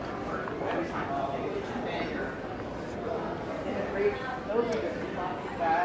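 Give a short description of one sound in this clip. A crowd of shoppers murmurs in the distance in a large, echoing hall.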